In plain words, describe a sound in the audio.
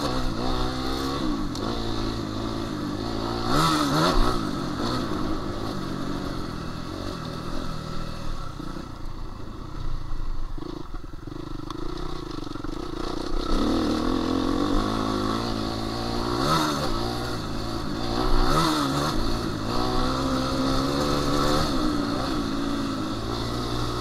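Tyres crunch and rumble over a rough dirt track.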